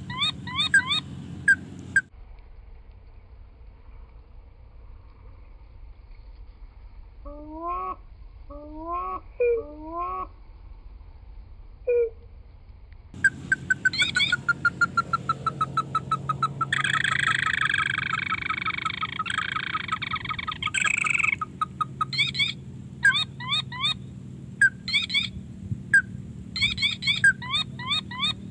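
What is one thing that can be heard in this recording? Water trickles gently along a ditch.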